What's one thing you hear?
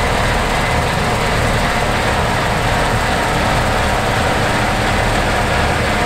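Crop rustles and crackles as a combine harvester cuts it.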